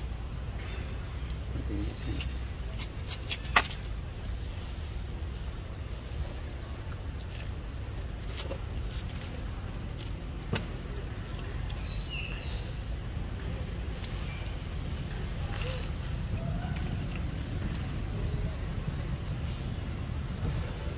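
A tree branch creaks and knocks as a monkey swings from it.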